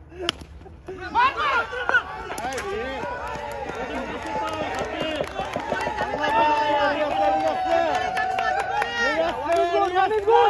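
Young men shout and cheer excitedly.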